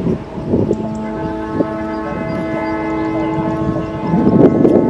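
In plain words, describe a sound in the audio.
A kite's flute hums a steady, chord-like drone overhead.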